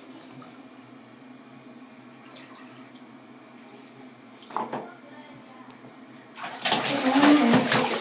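Bath water splashes as a toddler plays.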